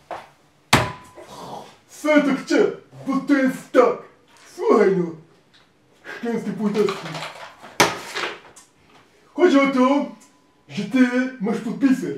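A second man speaks calmly close by.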